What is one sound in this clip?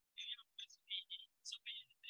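A man speaks calmly, heard thinly through an online call.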